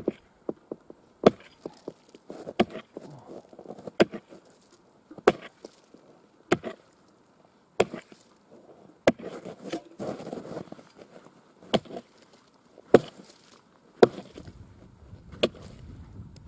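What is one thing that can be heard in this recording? Chips of ice scatter and crunch after each blow.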